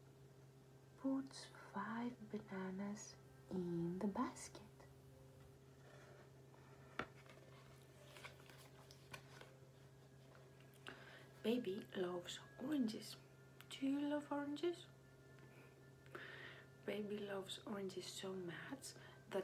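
A young woman reads aloud and talks expressively, close to a laptop microphone.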